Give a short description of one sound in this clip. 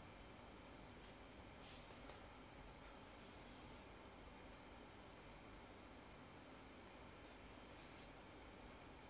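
Short bright game sound effects chime from a small phone speaker.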